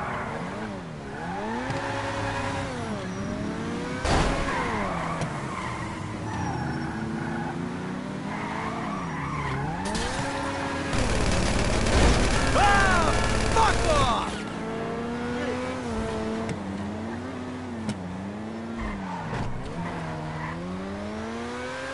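A sports car engine revs up and down loudly.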